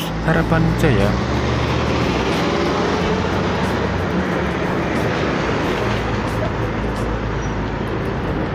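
A bus engine roars as it passes close by.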